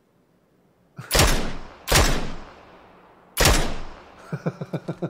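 A rifle fires several loud shots that echo away.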